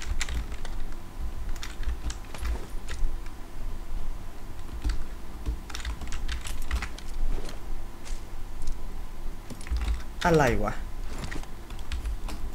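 Heavy footsteps thud on a wooden floor.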